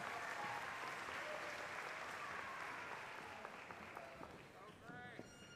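A large crowd applauds and cheers in a big echoing hall, then fades.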